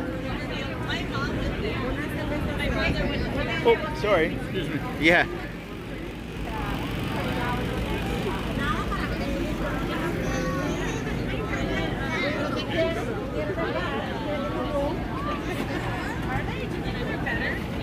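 A young woman talks with a customer nearby.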